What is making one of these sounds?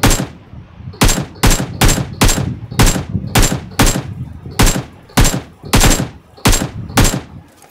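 A rifle fires single shots at an uneven pace, each echoing briefly.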